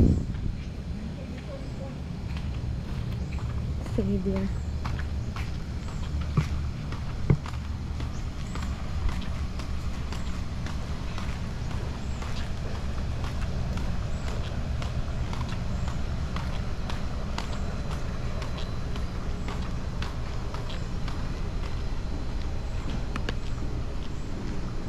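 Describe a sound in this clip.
Footsteps crunch and scuff on a rough path at a steady pace.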